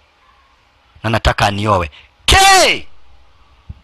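A young woman speaks sharply up close.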